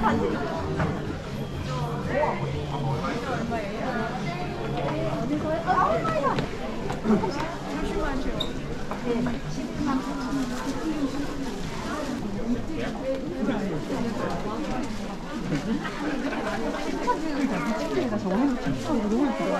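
A crowd of shoppers chatters throughout, echoing softly indoors.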